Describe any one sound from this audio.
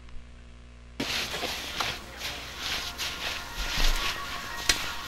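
Feet squelch and tread through wet mud.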